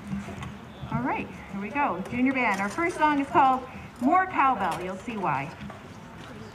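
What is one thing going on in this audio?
A woman speaks calmly through a microphone and loudspeaker outdoors.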